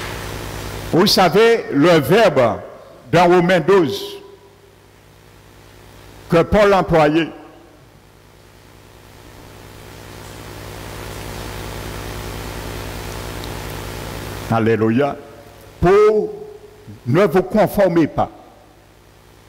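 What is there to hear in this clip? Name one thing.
An elderly man speaks with animation through a headset microphone.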